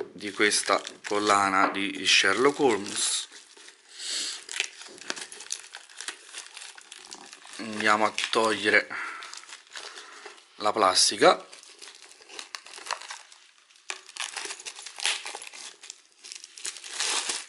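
Plastic wrap crinkles and rustles as hands peel it away.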